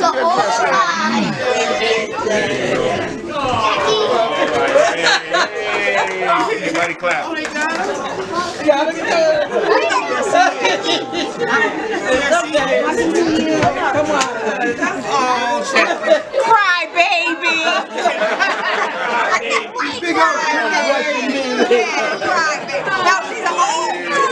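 A crowd of women chatter and talk excitedly all around.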